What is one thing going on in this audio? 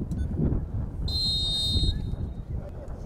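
A referee's whistle blows once, sharply.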